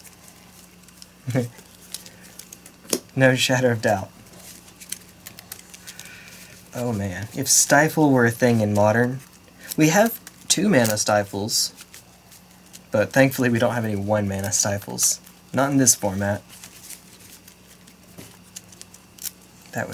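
Playing cards riffle and tap softly on a table mat.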